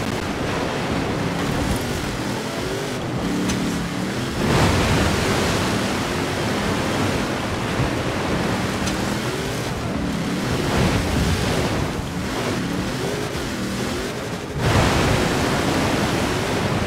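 An engine revs and roars, rising and falling in pitch.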